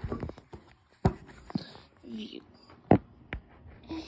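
A toy car is set down on a wooden table with a light knock.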